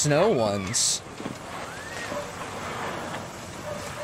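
Car tyres crunch and slide on snow.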